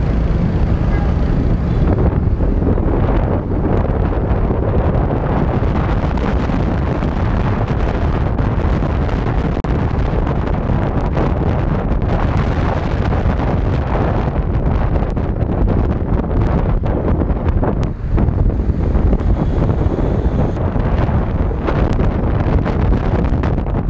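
A motorbike engine hums steadily while riding.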